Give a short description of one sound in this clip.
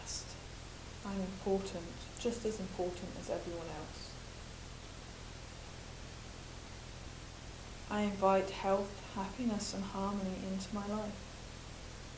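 A woman speaks calmly and closely, as if explaining.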